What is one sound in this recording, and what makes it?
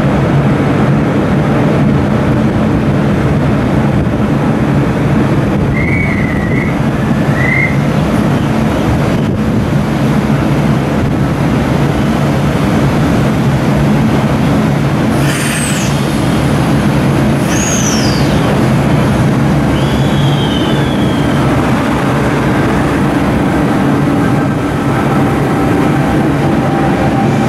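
A diesel train rumbles steadily past, close by.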